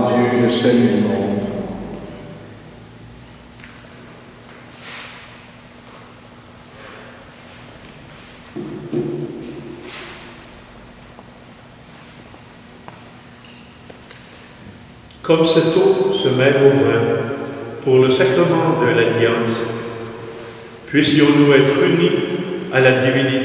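An elderly man chants slowly in an echoing hall.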